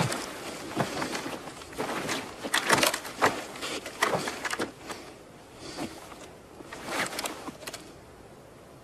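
Footsteps crunch as a man walks.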